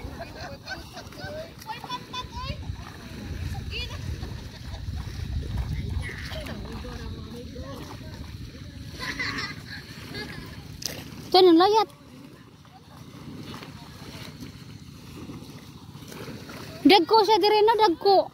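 A man splashes as he wades quickly through shallow water.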